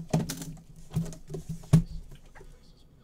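Hands knock and rattle a hard case.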